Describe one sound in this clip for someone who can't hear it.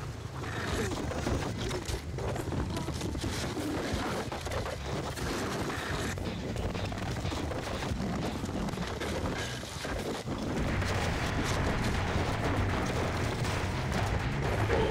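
Heavy footsteps thud quickly on the ground.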